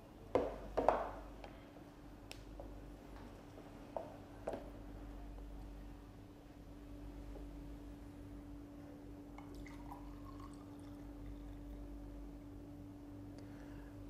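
A juicer motor hums steadily.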